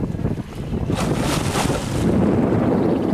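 A fish thrashes at the surface with a loud splash.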